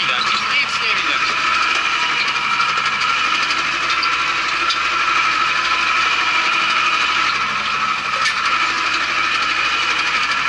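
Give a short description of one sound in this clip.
A tractor engine drones steadily from inside a closed cab.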